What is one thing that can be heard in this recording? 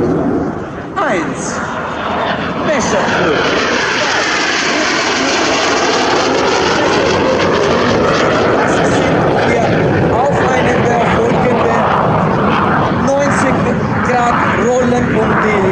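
A single jet roars past with a sweeping rise and fall in pitch.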